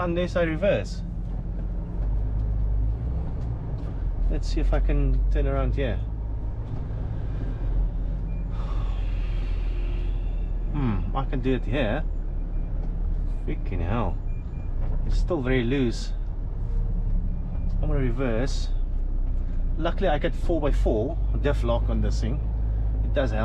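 A truck's diesel engine rumbles steadily while driving.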